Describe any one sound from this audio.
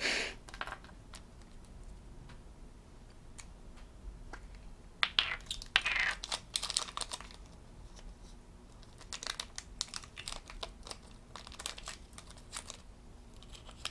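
Small plastic pieces click and rattle as they are handled.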